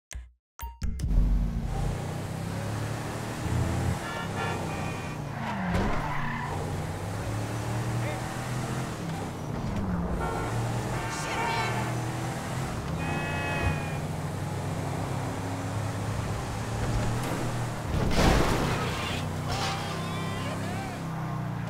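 A car engine hums steadily and revs as the car drives along.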